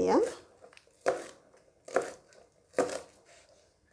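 A knife chops through vegetables on a plastic cutting board.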